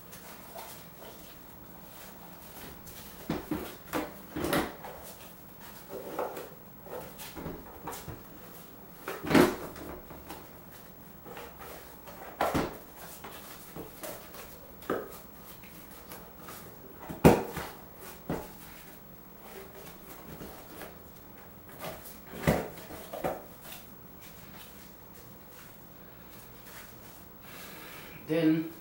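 Rubber creaks and squeaks as a tyre is worked onto a wheel by hand.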